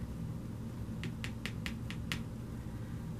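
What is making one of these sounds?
A card taps softly on a cloth-covered table.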